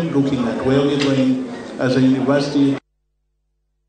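An elderly man speaks firmly into a microphone.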